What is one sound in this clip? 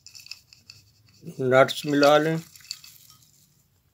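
Chopped nuts pour into a bowl.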